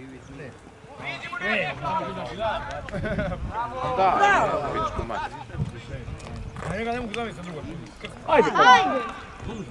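Men shout to each other outdoors across an open field.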